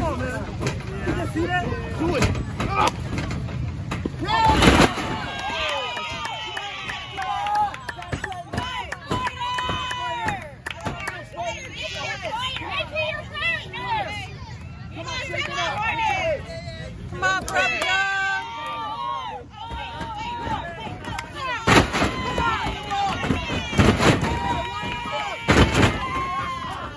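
A crowd outdoors cheers and shouts.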